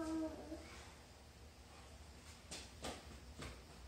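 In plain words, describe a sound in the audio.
A young child's footsteps patter across a hard floor.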